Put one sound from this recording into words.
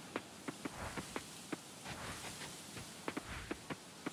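Light footsteps patter on a dirt path.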